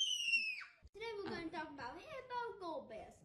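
A young boy talks.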